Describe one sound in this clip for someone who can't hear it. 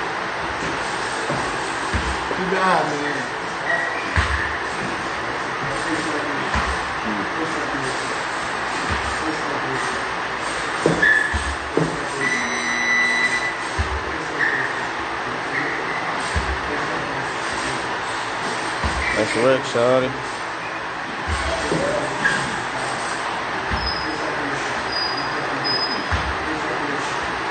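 A heavy ball thuds repeatedly against a rubber tyre.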